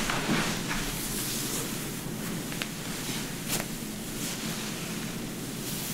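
Hands squeeze and rub through wet hair with soft squelching.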